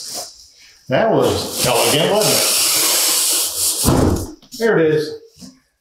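Foam packing squeaks and rubs against cardboard.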